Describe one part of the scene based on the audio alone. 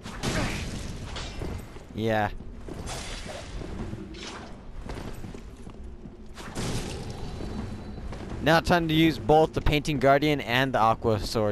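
Heavy swords swing and clash with metallic thuds.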